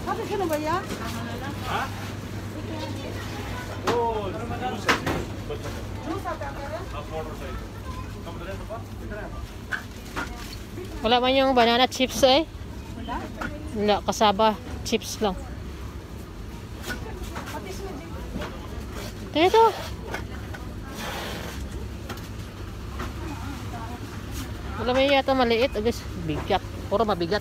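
A woman talks close to a phone's microphone.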